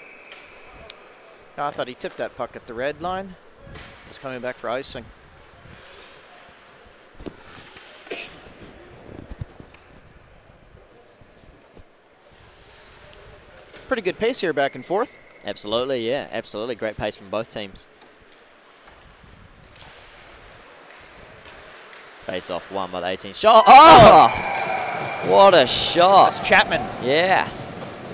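Ice skates scrape and glide across an ice rink.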